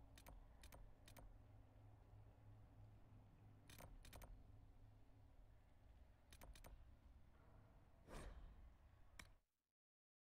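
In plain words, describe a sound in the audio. Menu buttons click sharply, one after another.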